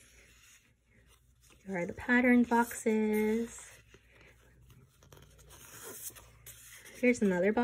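Paper sheets rustle softly as hands handle them.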